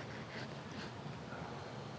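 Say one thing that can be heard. A knife slices through a lemon.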